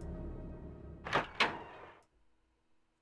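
A heavy door creaks open and thuds.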